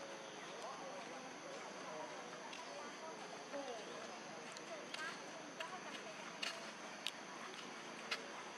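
A baby monkey chews and munches noisily on food.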